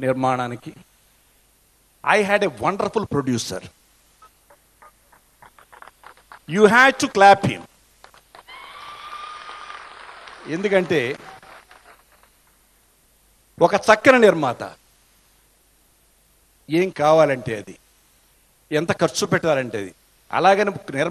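An elderly man speaks forcefully into a microphone, heard through loudspeakers.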